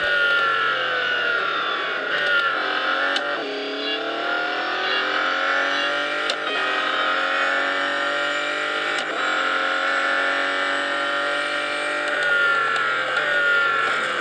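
A racing car engine roars loudly, rising in pitch and dropping at each gear change.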